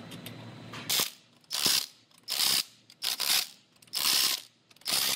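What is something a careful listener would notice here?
An impact wrench whirs in short loud bursts on wheel nuts.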